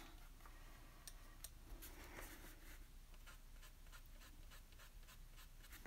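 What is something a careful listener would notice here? A brush lightly scratches and taps on paper.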